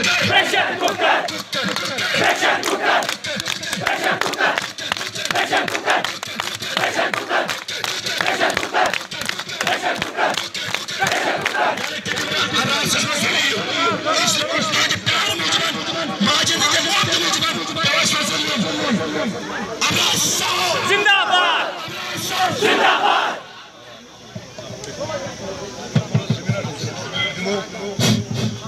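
A crowd of young men chants and cheers loudly outdoors.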